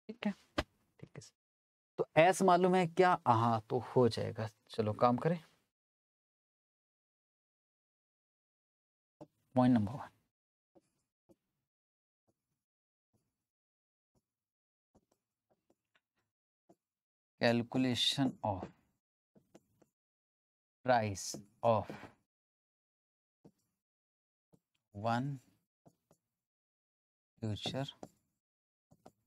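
A man speaks calmly into a close microphone, in short bursts with pauses.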